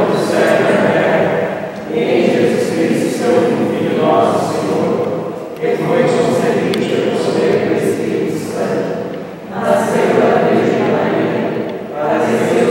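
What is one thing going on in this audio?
A man sings through a microphone in an echoing hall.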